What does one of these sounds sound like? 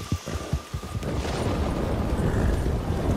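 Leafy branches brush and rustle against a passing horse.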